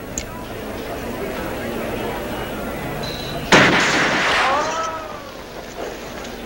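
A crowd of men and women murmurs outdoors.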